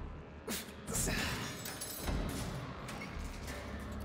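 A metal door unlatches and swings open.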